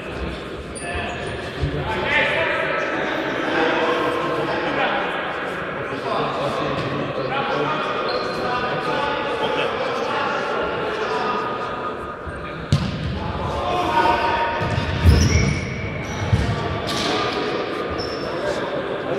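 Sports shoes squeak on a hall floor.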